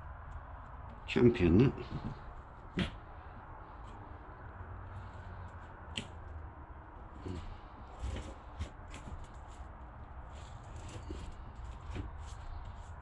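A hard panel knocks and rattles against a wooden board.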